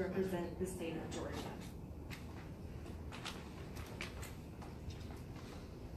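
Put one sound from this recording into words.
A young woman speaks calmly through a microphone in a room with some echo.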